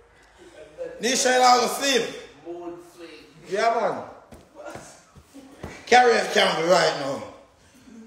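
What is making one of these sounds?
A young man talks loudly and with animation close by.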